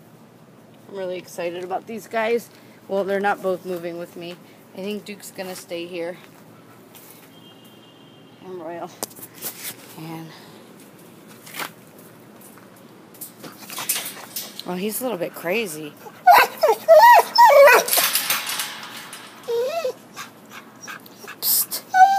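A young woman talks close by, calmly.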